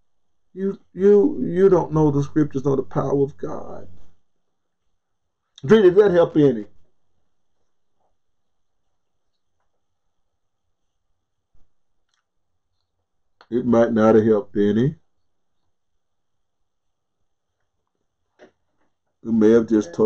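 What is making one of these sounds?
An elderly man speaks calmly and closely into a microphone, with long pauses.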